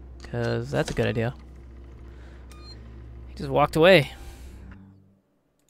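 Buttons click as they are pressed on a panel.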